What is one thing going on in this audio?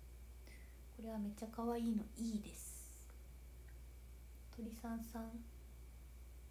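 A young woman speaks softly and briefly, close to a phone microphone.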